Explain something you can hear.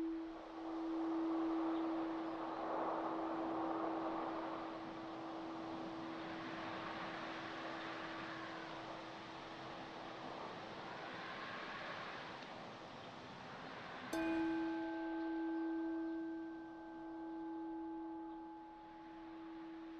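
Wind blows across open ground, rustling dry grass.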